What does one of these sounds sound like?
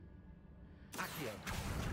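A chest opens with a sudden loud shimmering burst.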